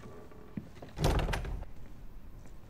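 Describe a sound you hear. A door thuds open.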